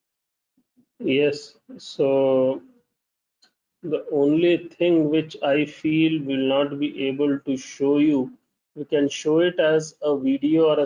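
A middle-aged man speaks calmly and steadily into a microphone.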